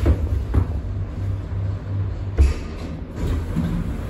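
Lift doors slide open.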